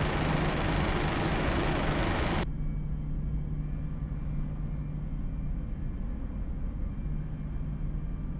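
Jet engines hum steadily with a loud rushing roar that suddenly drops away to a low rumble.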